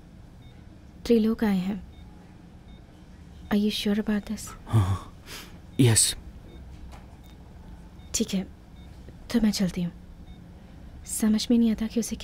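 A woman speaks softly and slowly nearby.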